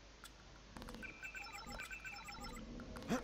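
Short electronic beeps sound in quick succession.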